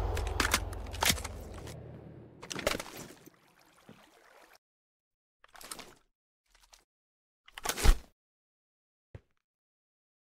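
A rifle fires loud sharp shots, one after another.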